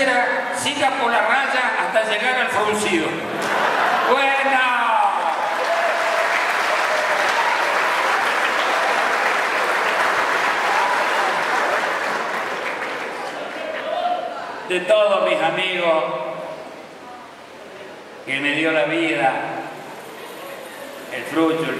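An elderly man speaks with animation into a microphone, heard through loudspeakers.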